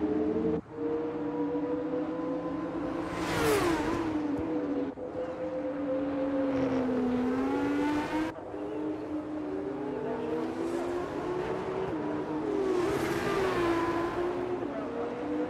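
A racing car engine screams at high revs, rising and falling in pitch as gears shift.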